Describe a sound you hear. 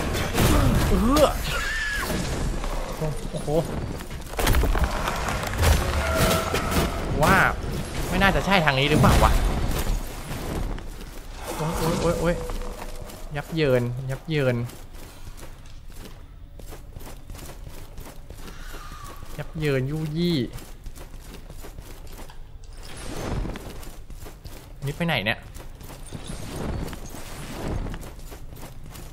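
A young man talks with animation into a headset microphone, close by.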